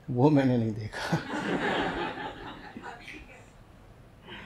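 A middle-aged man laughs heartily into a microphone.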